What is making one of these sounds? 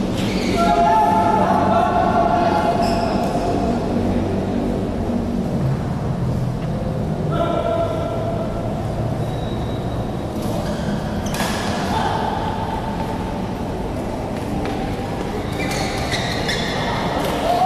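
Sneakers squeak sharply on a court floor in a large echoing hall.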